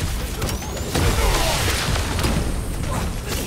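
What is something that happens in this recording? A loud energy blast bursts with a deep boom.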